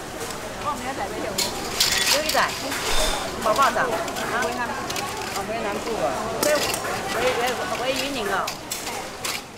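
Two middle-aged women chat casually nearby.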